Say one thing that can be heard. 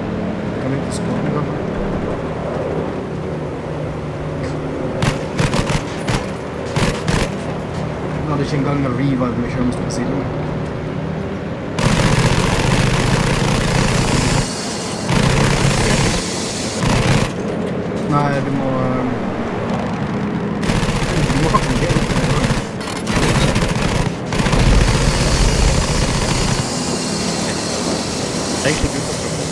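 A propeller aircraft engine drones steadily throughout.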